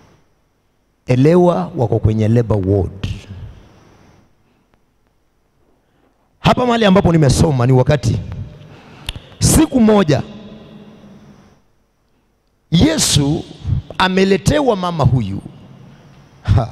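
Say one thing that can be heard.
A man speaks forcefully into a microphone over loudspeakers, in bursts with pauses, in a room with echo.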